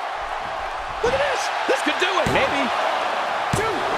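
A body slams hard onto a wrestling mat with loud thuds.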